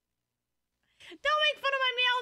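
A young woman speaks brightly and animatedly into a microphone.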